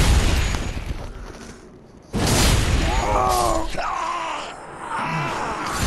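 Heavy metal blades swing and strike with loud crashes.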